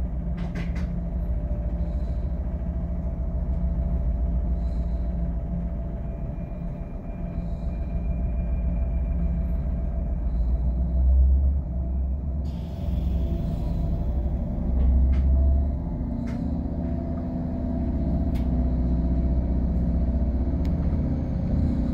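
A vehicle engine rumbles low and steady from inside the vehicle.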